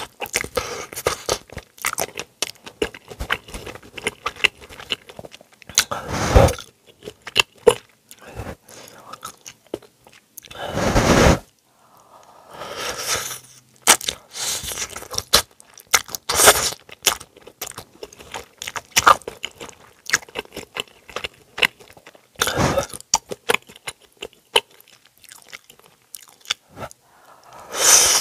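A person slurps noodles loudly and close to a microphone.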